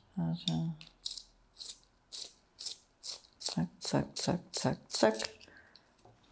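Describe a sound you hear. A pencil is sharpened with a rasping, scraping sound.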